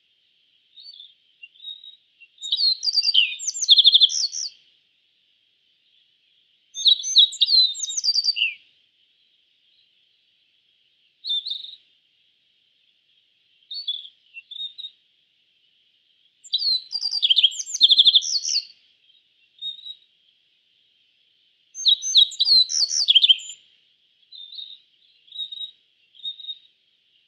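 A small songbird sings bright, twittering phrases in short bursts with pauses between.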